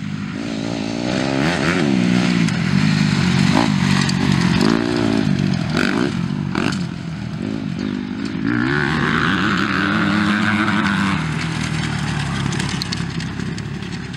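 Dirt bike engines rev and roar up close, rising and falling in pitch.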